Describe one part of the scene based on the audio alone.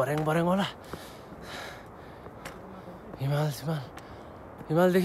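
Footsteps climb stone steps outdoors.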